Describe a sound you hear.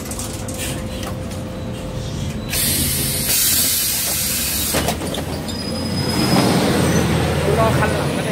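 Traffic hums along a city street outdoors.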